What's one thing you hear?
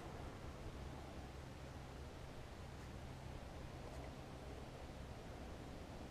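A fishing reel winds with a soft whirring.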